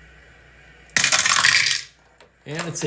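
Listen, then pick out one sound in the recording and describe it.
Dice rattle and clatter onto a wooden tray.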